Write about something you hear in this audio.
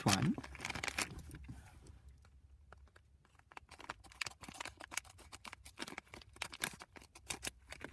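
Plastic foil packets crinkle and rustle in hands.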